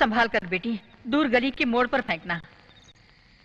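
An elderly woman speaks with feeling, close by.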